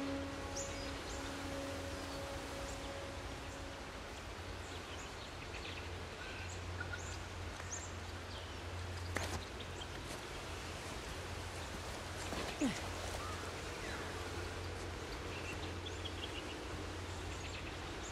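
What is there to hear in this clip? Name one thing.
Hands scrape and grip on stone while climbing along a ledge.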